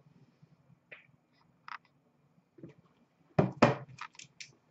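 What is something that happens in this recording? Small cardboard boxes knock and slide against each other close by.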